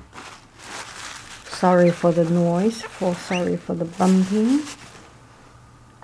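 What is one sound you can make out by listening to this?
A cloth rubs and wipes against a ceramic plate.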